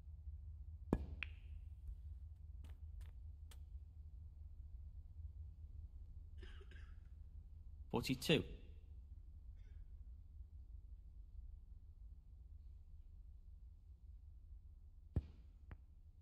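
A snooker cue tip strikes the cue ball with a sharp click.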